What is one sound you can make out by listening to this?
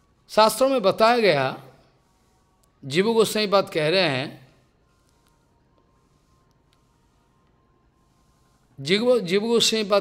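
An elderly man speaks calmly into a microphone, pausing between phrases.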